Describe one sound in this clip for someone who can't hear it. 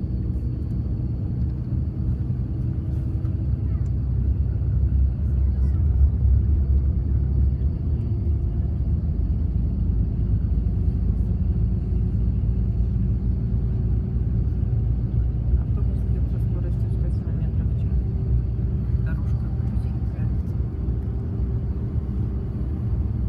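A bus engine rumbles low and steady, heard from inside the moving bus.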